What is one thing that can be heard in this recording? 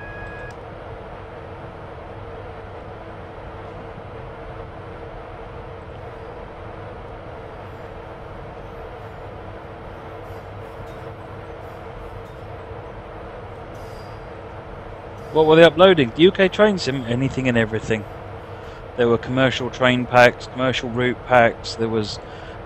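A train engine hums steadily.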